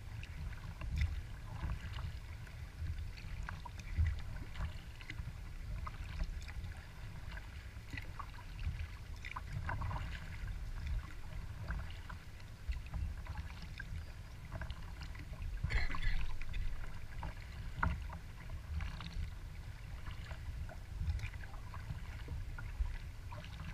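Water laps and splashes against the hull of a moving kayak.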